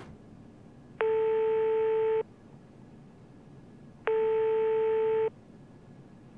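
A telephone ringing tone sounds through a handset.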